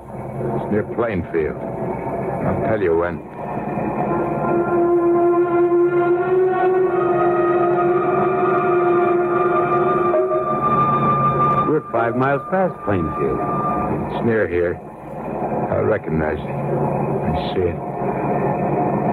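An old radio plays tinny, muffled music.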